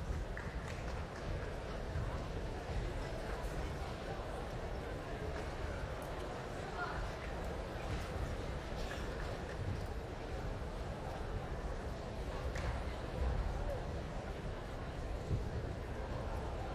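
A large audience murmurs and chatters in a big echoing hall.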